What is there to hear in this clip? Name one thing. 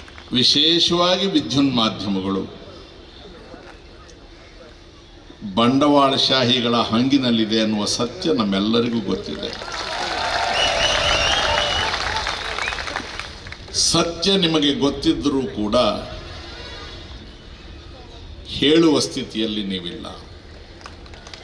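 An elderly man speaks forcefully through a loudspeaker outdoors, with pauses between phrases.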